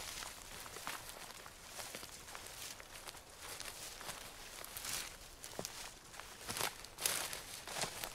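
Dry ferns rustle and crackle as someone pushes through them.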